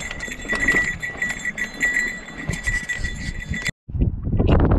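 A mountain bike rattles and clatters over a rough dirt trail.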